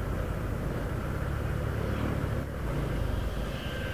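A motorcycle engine drones nearby on the road.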